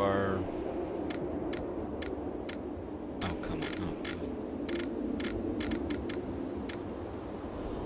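Menu selections click in quick ticks.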